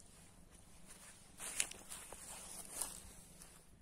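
Footsteps crunch on grass and dry leaves.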